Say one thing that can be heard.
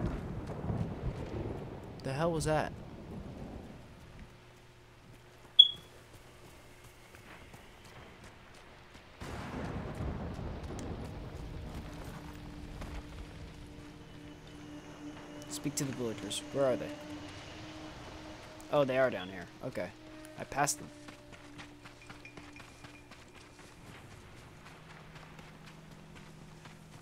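A horse's hooves thud as it gallops over the ground.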